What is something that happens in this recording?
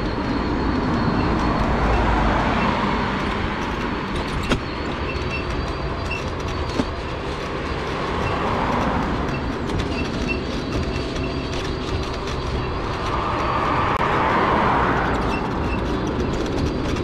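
Cars pass by on a nearby road with a rushing hiss.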